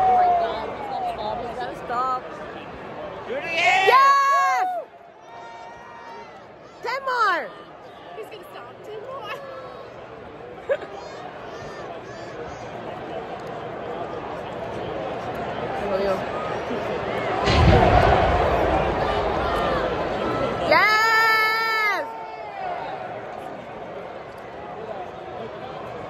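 A large crowd murmurs and cheers in a big echoing hall.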